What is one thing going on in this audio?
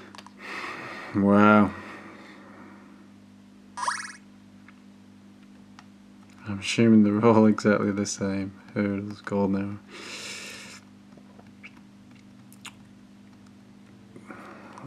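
Buttons on a small handheld game console click softly.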